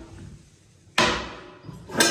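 A toilet lid bangs open.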